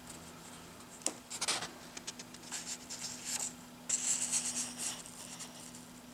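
Paper pages rustle and crinkle as they are turned.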